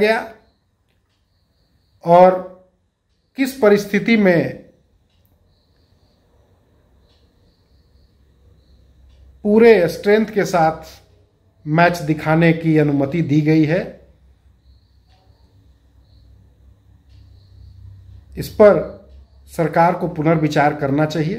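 A middle-aged man speaks calmly and closely into a microphone, with long pauses.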